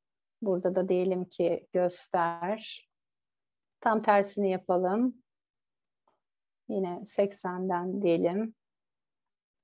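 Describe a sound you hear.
A woman speaks calmly through an online call, in short bursts with pauses.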